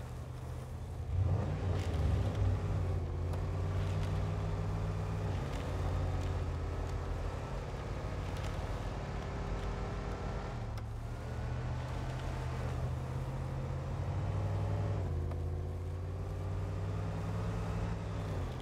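Tyres crunch over snow and rough ground.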